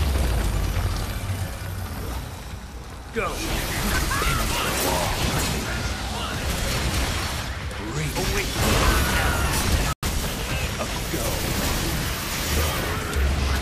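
Blades slash and clang against monsters.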